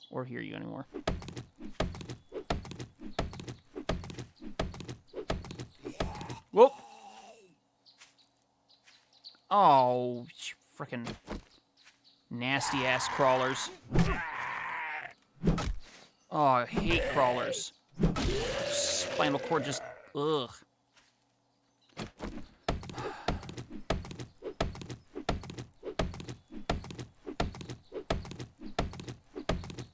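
A stone axe chops into a tree trunk with repeated hard knocks.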